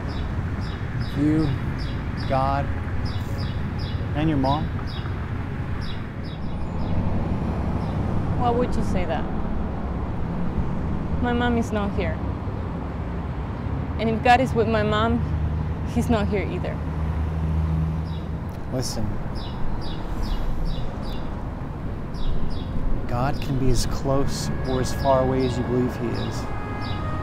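A man speaks calmly and sadly nearby.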